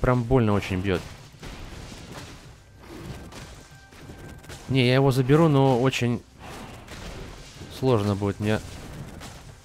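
A young man talks animatedly into a close microphone, in short bursts.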